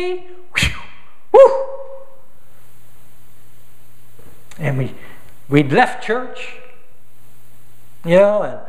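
An older man speaks with animation through a microphone in a large echoing hall, with pauses between phrases.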